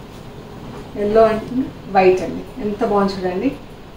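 A middle-aged woman speaks calmly and clearly close by.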